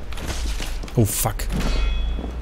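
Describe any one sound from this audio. A heavy metal weapon clangs against armour.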